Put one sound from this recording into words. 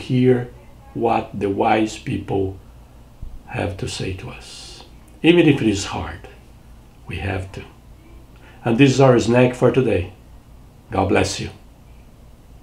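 An older man speaks calmly and closely into a microphone.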